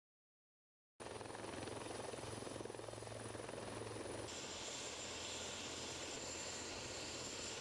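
A helicopter's engine and rotor whir steadily.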